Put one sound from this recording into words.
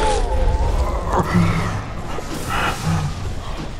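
A machine hums with a low, steady drone.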